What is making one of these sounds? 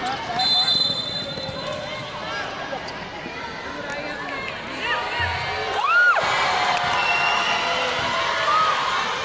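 Young players shout and call out across the court.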